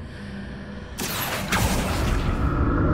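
A magic spell bursts out with a loud rushing crackle.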